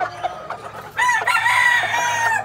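A rooster crows close by.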